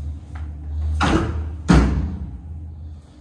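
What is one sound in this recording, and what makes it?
A pull-out sofa bed section slides shut with two loud thuds.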